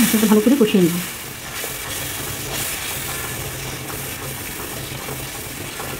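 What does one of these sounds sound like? A spatula stirs and scrapes through thick sauce in a pan.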